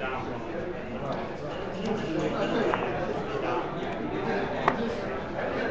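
Plastic game pieces click against each other as a hand moves them.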